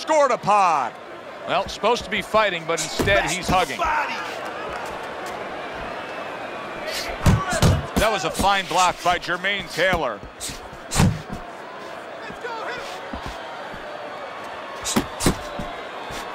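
Gloved punches thud against a body.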